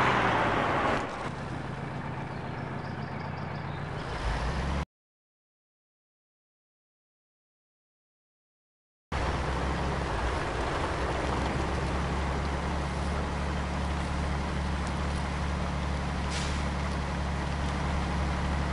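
A truck engine rumbles steadily at a low pitch.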